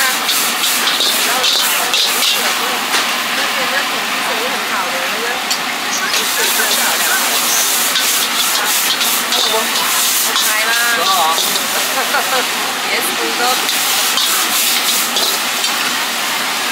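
A metal ladle clanks against a wok.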